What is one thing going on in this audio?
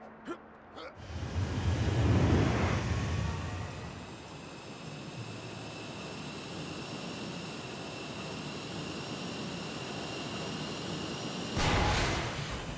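A hover vehicle's engine whooshes and hums steadily as it flies.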